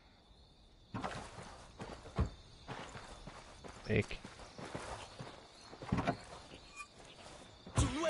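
Footsteps crunch on dirt and gravel.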